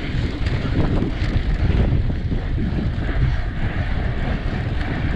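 Wind rushes loudly past the rider outdoors.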